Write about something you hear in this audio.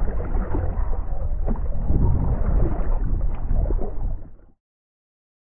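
Water splashes against a small boat.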